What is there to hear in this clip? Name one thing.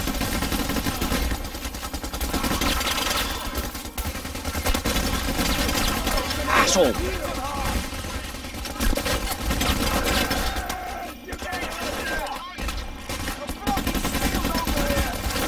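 Gunfire rattles and bangs in rapid bursts.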